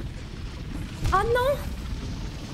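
A young woman exclaims briefly into a microphone.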